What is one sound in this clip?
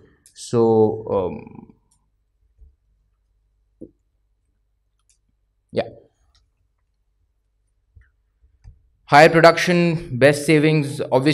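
A man speaks into a microphone in a large room, pausing between phrases.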